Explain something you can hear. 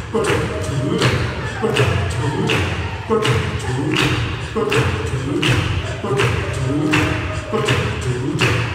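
A male choir sings in close harmony.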